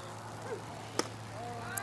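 A baseball pops sharply into a catcher's mitt.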